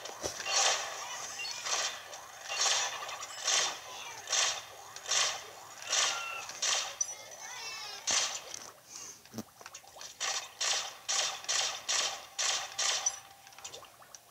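Video game shots fire in quick bursts from a small handheld speaker.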